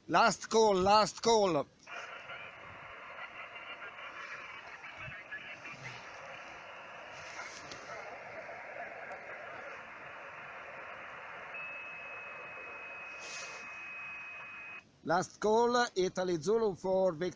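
A man speaks close up into a radio handset.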